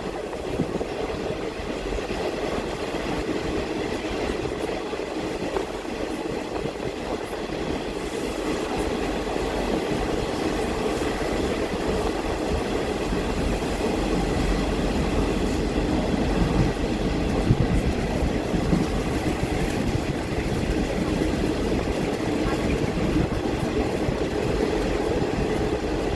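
Wind rushes past an open window of a moving train.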